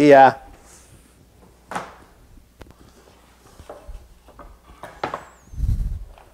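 Wooden boards knock and clatter as they are handled.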